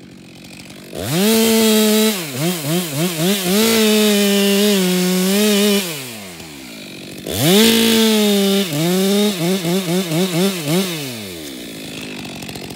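A chainsaw revs loudly in short bursts, its engine rising and falling.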